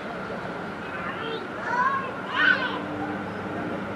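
Young women shout in the distance across a large echoing hall.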